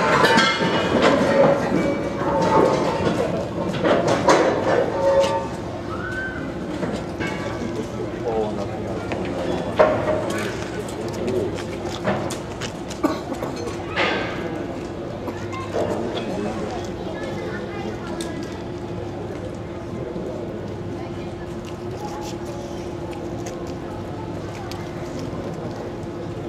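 Several men talk loudly nearby, outdoors.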